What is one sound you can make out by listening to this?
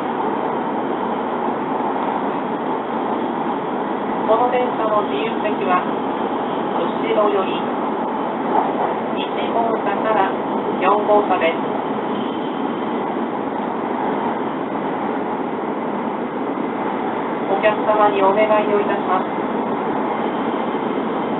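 A vehicle rumbles and hums steadily while moving.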